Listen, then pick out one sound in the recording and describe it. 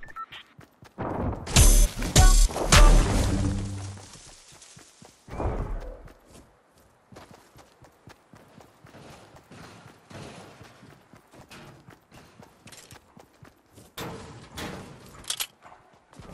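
Footsteps patter on grass and pavement as a game character runs.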